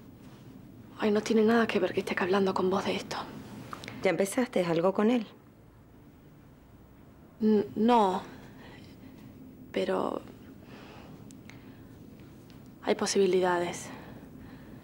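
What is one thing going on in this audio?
A young woman speaks calmly and seriously, close by.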